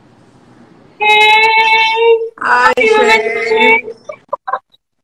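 Two women laugh together over an online call.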